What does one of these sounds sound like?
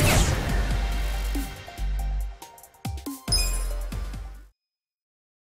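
A level-up jingle chimes brightly.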